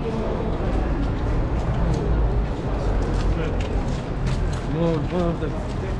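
Several people talk nearby as they walk past.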